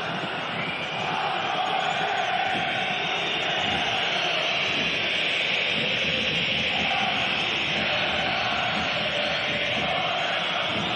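A stadium crowd chants and sings in unison.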